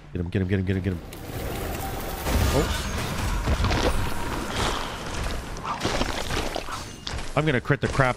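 Magic blasts and blows clash in a loud fight.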